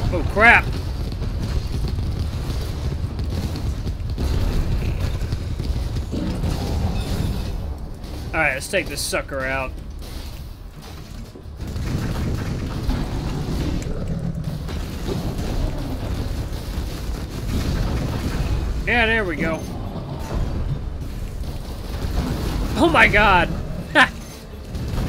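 Gunfire and explosions rumble steadily.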